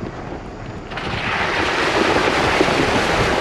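Tyres splash through a muddy puddle.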